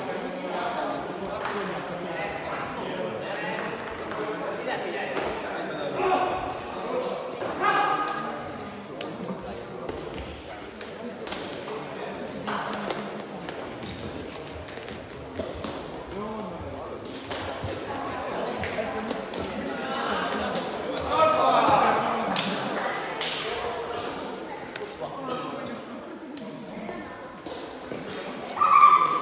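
Voices of men chatter and call out across a large echoing sports hall.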